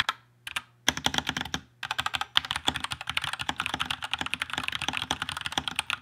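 Keys on a mechanical keyboard clack quickly under fast typing.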